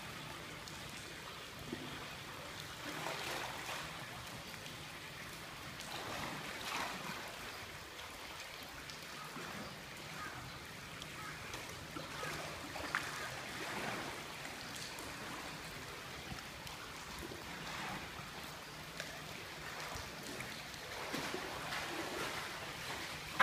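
A polar bear splashes as it swims and dives in water.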